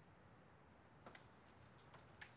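A door handle clicks and a door opens.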